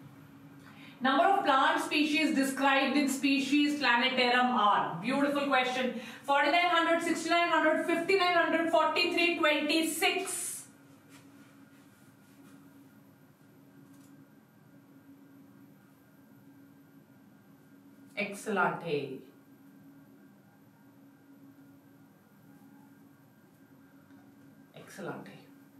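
A woman speaks clearly into a microphone, explaining with animation.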